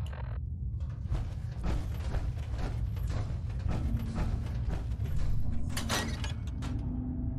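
Heavy metal-armoured footsteps clank on stone steps.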